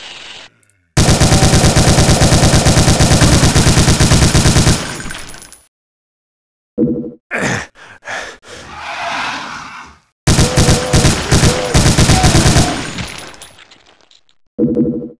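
A rapid-fire gun shoots in fast bursts.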